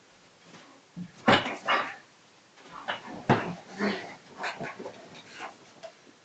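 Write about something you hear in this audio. A dog scrambles and thumps on a soft bed.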